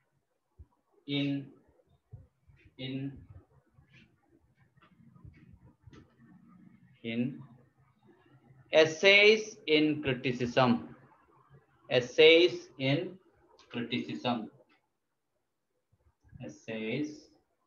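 A man speaks calmly and close by, lecturing.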